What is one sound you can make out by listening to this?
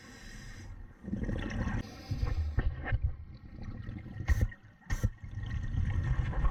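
Water swishes and rumbles as a diver moves underwater.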